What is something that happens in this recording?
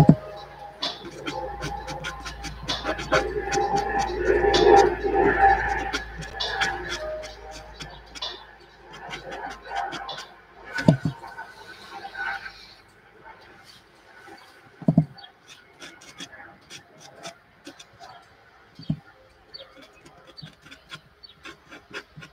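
A pencil scratches and taps softly on paper.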